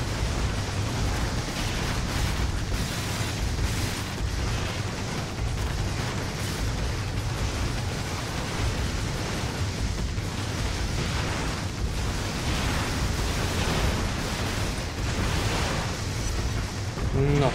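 Energy weapons crackle and whoosh.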